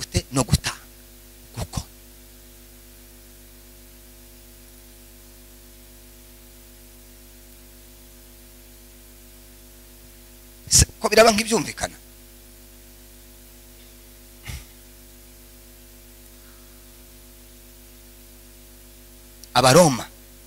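A man speaks with animation through a loudspeaker in a large echoing hall, in short bursts.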